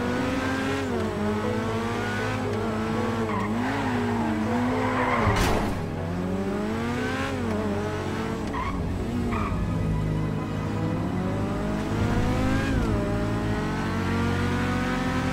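A sports car engine roars steadily, its pitch rising and falling as it speeds up and shifts gears.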